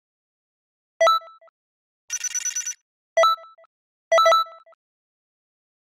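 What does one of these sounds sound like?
A bright electronic chime sounds as a reward pops up.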